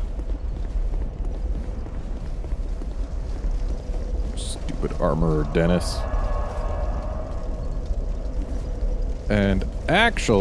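Lava rumbles with a low, steady roar.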